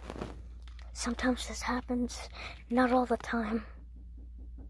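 A young boy talks playfully close to a phone microphone.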